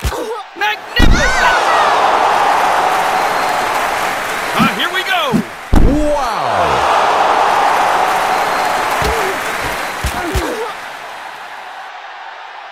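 A crowd cheers and roars loudly, rising and falling.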